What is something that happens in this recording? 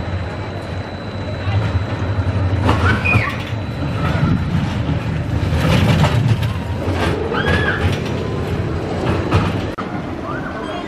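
A roller coaster train rumbles loudly along its track.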